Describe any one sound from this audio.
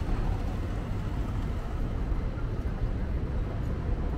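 A motor scooter rides past nearby.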